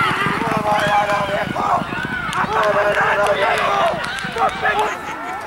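Horses' hooves thud rapidly on a dirt track as they gallop.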